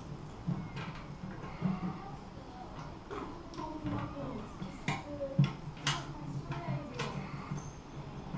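Plastic tubing rubs and creaks against metal as hands handle it.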